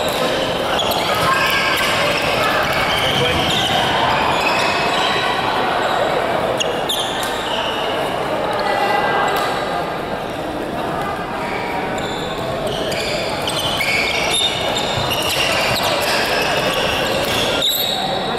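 Many voices chatter in a large echoing hall.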